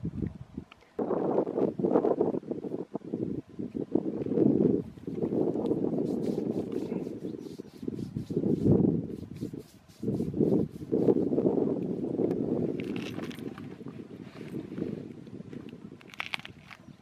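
Wind gusts and rumbles across the microphone outdoors.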